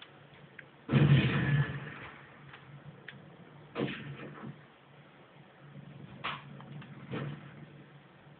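Gunshots from a video game play through a television speaker.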